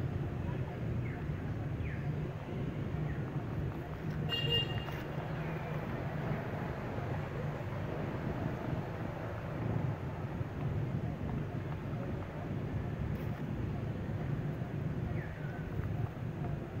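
A baby monkey squeaks softly.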